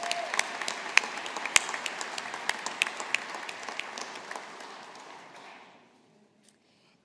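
An audience applauds in a large echoing hall, and the clapping fades out.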